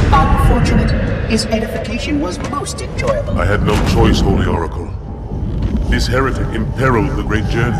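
A man with a deep voice speaks slowly and menacingly.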